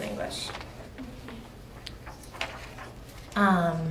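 Paper rustles in a young woman's hands.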